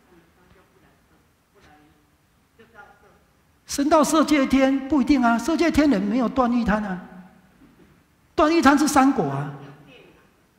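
A middle-aged man speaks calmly to an audience through a microphone, in a room with some echo.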